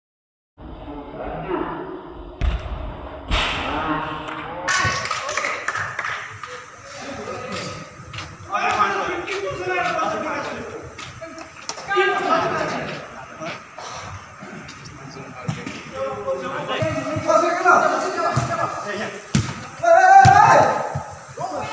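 Young men shout and call out to each other during a game.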